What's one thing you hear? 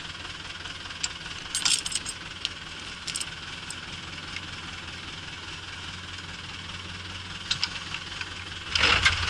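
Metal chain links clink and rattle as hands handle them.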